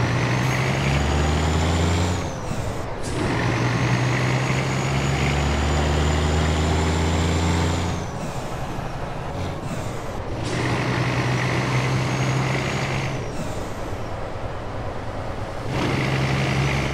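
A truck's diesel engine roars, revving up and dropping back with each gear change.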